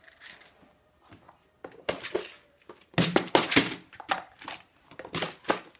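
Small items rattle inside a plastic box.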